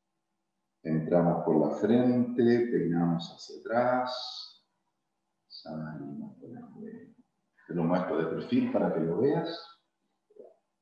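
A middle-aged man speaks calmly through a microphone on an online call.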